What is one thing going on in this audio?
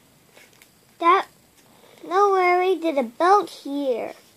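A young child reads aloud slowly, close by.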